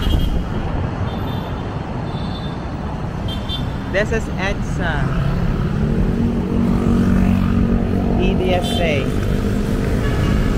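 Motorcycle engines drone as they pass close by.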